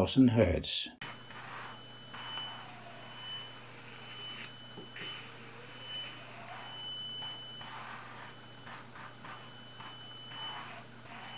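A high, thin tone sounds from a tube, swelling and fading in loudness.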